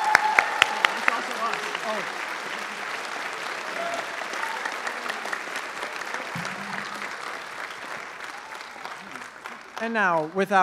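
An audience claps and cheers in a large hall.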